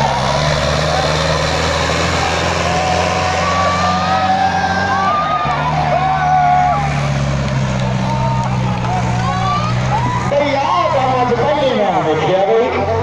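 A tractor engine roars loudly under heavy load.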